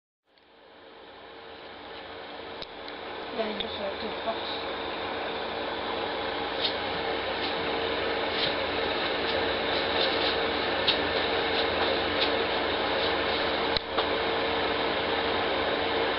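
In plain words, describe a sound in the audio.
An aquarium pump hums steadily.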